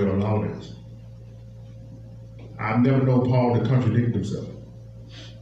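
A man speaks into a microphone through a loudspeaker, with pauses.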